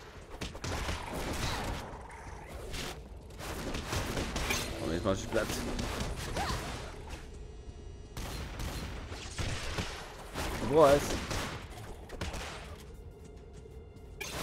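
Weapon blows and impacts thud and crackle repeatedly.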